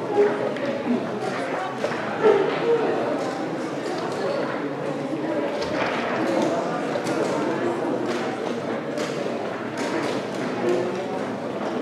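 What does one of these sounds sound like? Wooden chess pieces clack on a board.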